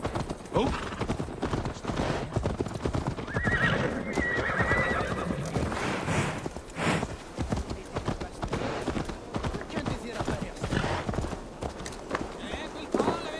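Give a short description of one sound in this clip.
Horses' hooves clop steadily on a dirt path.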